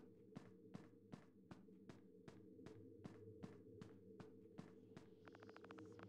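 Footsteps tap steadily.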